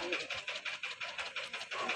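A drum beats rapidly.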